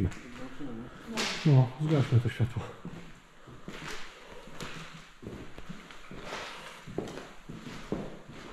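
Footsteps tap across a wooden floor in a hollow, echoing room.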